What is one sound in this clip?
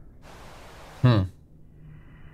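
A man makes a short low exclamation close to a microphone.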